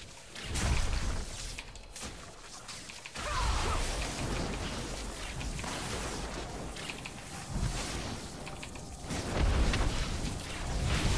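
Magic spells whoosh and boom in a fight.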